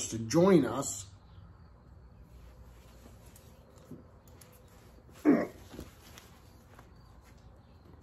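A man puffs on a cigar.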